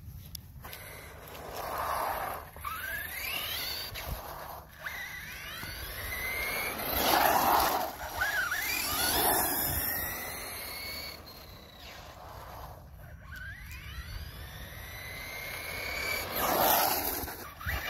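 Small tyres hiss on pavement.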